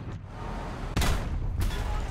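A tank cannon fires with a loud boom.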